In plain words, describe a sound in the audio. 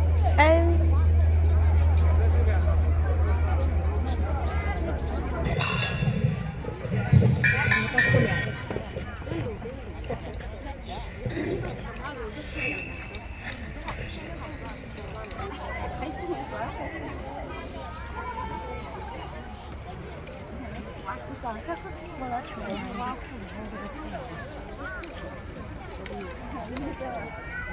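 Young children chatter and call out nearby outdoors.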